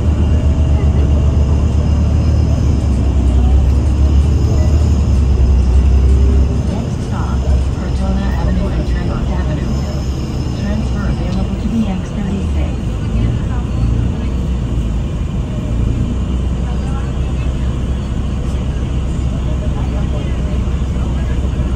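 A bus engine rumbles low and steady inside the cabin.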